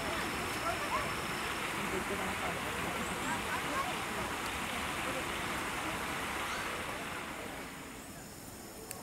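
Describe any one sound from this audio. A chimpanzee rustles through tall grass.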